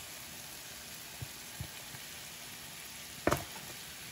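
Tomato sauce plops into a pan.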